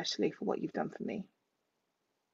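A woman speaks warmly over an online call.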